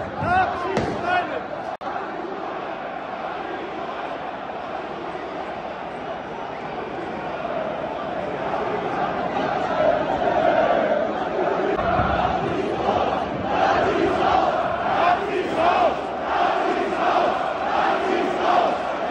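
A large crowd sings and chants loudly nearby, becoming more rhythmic.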